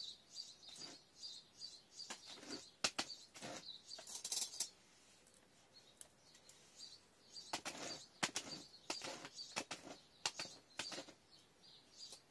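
Hands press and rustle potting soil around a plant.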